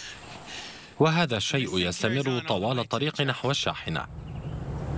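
A middle-aged man speaks calmly close by.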